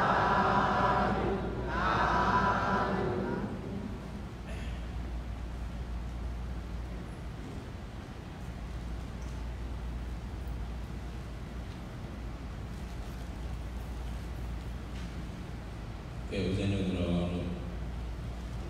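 An elderly man speaks slowly and calmly into a microphone in a large echoing hall.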